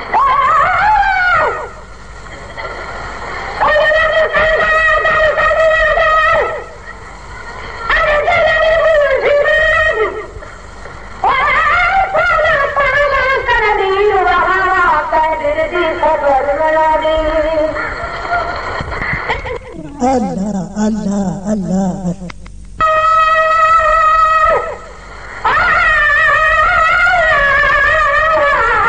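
An elderly man chants melodically through a microphone, in long drawn-out phrases with short pauses.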